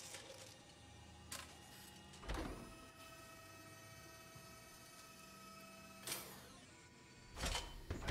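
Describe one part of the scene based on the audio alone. A robotic arm whirs and hums as it moves.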